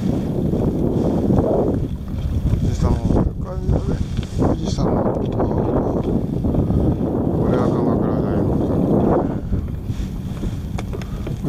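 Small waves on a choppy sea slap against a kayak's hull.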